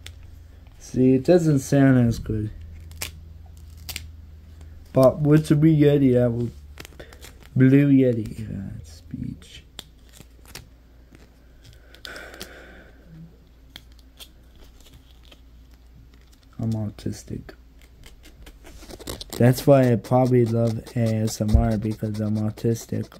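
A young man speaks softly and close into a microphone.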